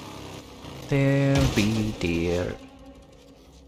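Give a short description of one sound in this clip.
A motorcycle crashes into a deer with a heavy thud.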